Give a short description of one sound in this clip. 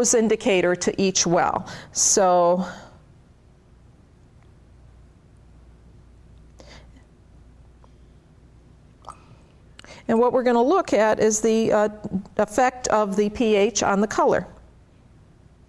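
A woman speaks calmly into a microphone, explaining.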